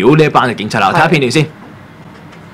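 A young man speaks with animation into a microphone.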